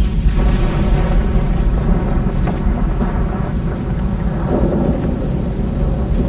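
A huge blast roars with a deep, rumbling boom.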